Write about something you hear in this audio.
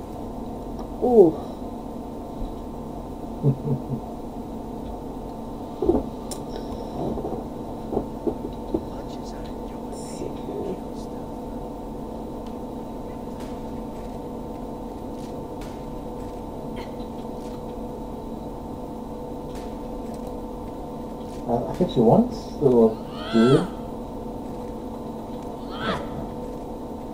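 A young man talks into a close microphone in short bursts.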